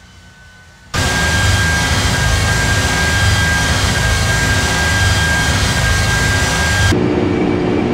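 Wind rushes loudly past an aircraft wing.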